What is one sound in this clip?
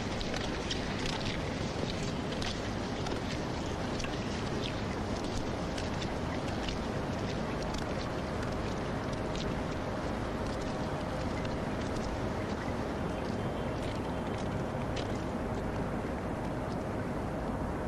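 Footsteps tap on stone paving outdoors.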